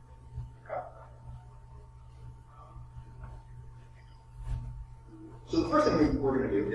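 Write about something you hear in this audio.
A man speaks to an audience in a large room, heard from a distance.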